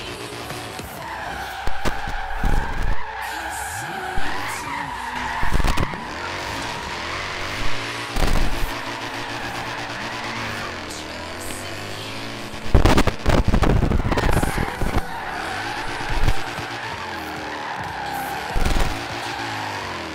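Tyres squeal as a car drifts sideways.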